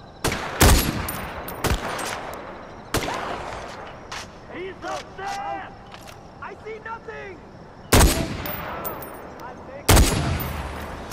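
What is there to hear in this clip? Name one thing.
A rifle fires loud, sharp shots that echo away.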